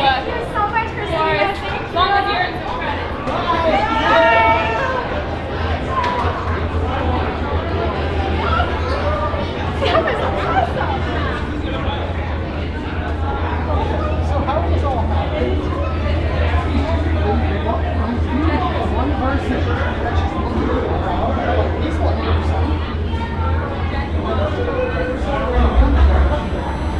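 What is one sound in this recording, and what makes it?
A crowd of people chatters around.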